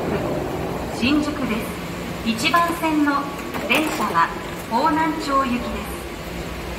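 A chime sounds as the train doors open.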